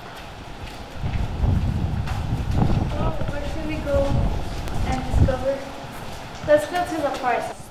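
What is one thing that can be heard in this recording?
Young girls chat and laugh close by.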